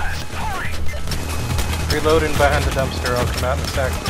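A gun is reloaded with metallic clicks.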